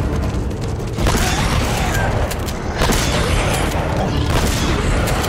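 A shotgun fires several loud blasts.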